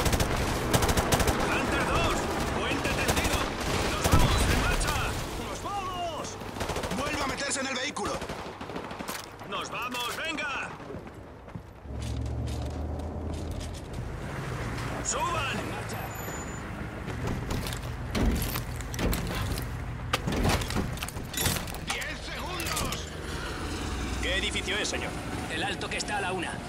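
Men shout to each other with urgency.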